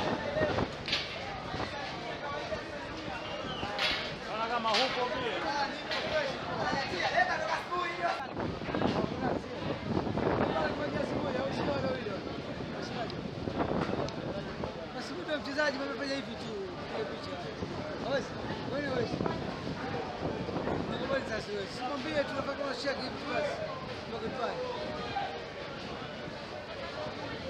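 Several young men chatter and call out to each other nearby, outdoors.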